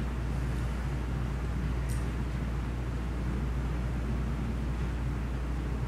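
A man lectures calmly in an echoing room.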